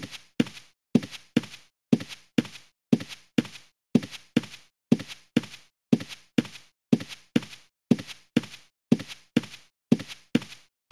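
Footsteps fall at a quick, steady pace on soft ground.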